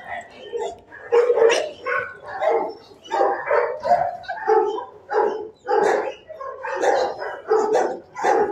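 A dog whines and grumbles up close.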